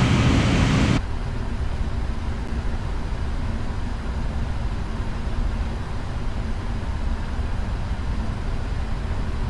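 Jet engines hum in a muffled way inside an airliner cockpit.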